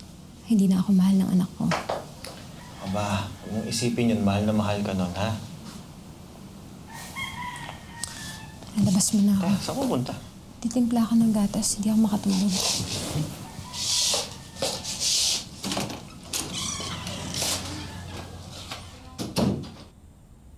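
A young man speaks quietly and close by.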